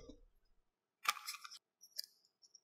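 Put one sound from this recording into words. A plastic film canister lid pops off.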